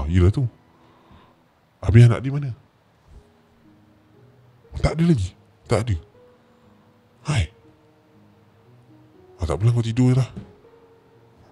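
A young man speaks close into a microphone in short, calm bursts with pauses.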